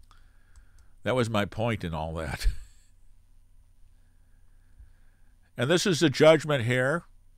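An elderly man speaks calmly and closely into a microphone, with pauses.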